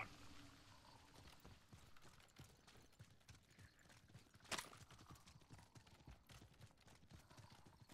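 Footsteps run quickly over rough ground.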